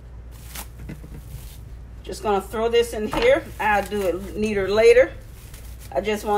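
Plastic wrap crinkles as it is pressed around dough.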